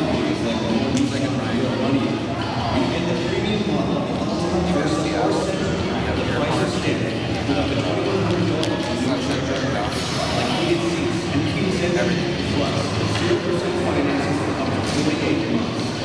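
Hockey sticks clack against pucks on the ice.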